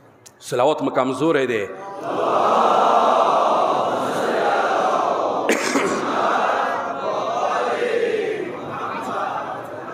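A man speaks loudly and with emotion through a microphone and loudspeakers.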